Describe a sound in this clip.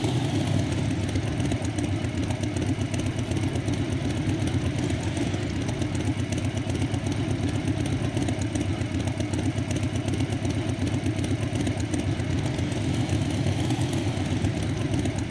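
A motorcycle engine roars steadily as it rides over rough ground.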